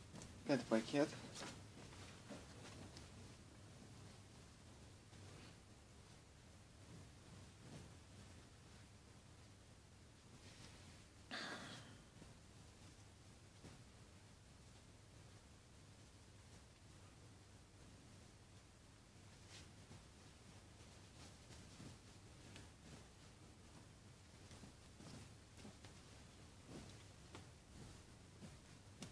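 Soft fabric rustles and swishes as clothes are laid down and handled.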